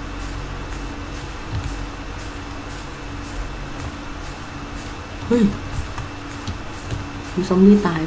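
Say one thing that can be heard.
Footsteps rustle steadily through tall grass.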